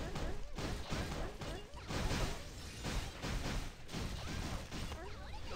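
Sword slashes and hits ring out rapidly in a fast fight.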